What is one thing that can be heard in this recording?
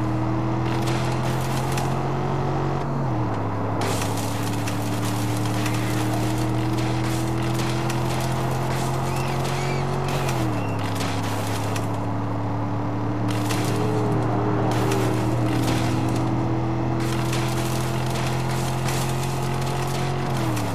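A vehicle engine hums steadily and shifts gears.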